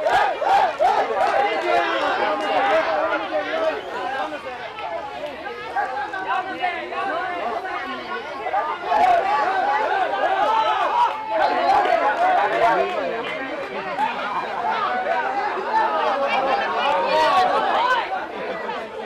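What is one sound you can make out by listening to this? A large crowd outdoors chatters and cheers loudly close by.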